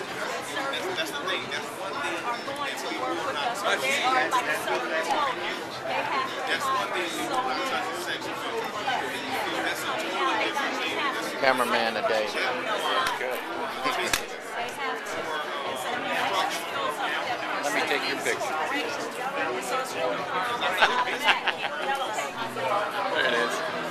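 Several adults talk at once close by, with overlapping chatter.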